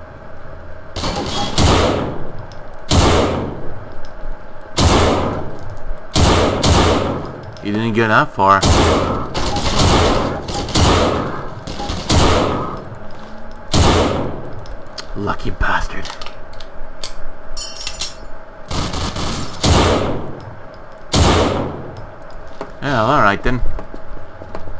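A rifle fires loud single shots that echo off walls.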